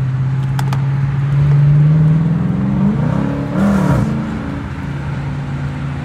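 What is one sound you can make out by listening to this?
A car engine roars loudly as the car accelerates, its pitch rising and dropping with a gear change.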